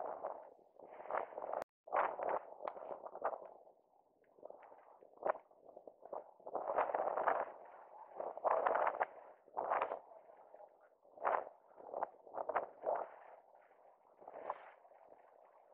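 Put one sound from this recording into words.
Inline skate wheels roll and scrape on asphalt in rhythmic strokes.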